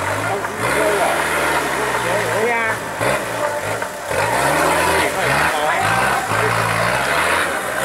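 An off-road 4x4 engine revs hard while climbing a muddy bank.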